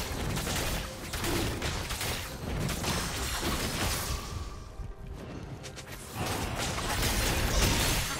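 Magical spell effects whoosh and crackle.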